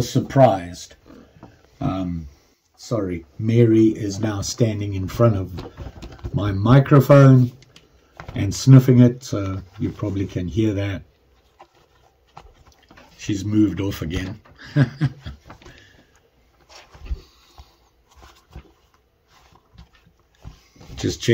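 Soft leather rustles and crinkles in hands.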